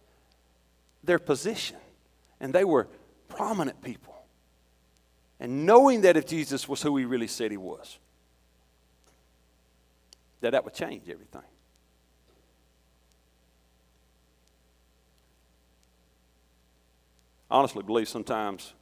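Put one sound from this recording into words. A middle-aged man preaches through a microphone with animation, his voice echoing in a large hall, with long pauses.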